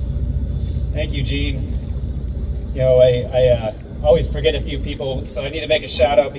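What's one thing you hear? A man speaks into a microphone over a loudspeaker outdoors.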